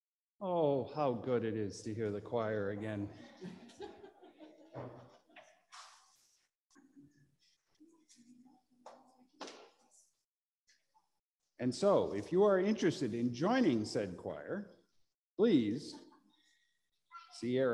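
A middle-aged man speaks calmly nearby in a slightly echoing room.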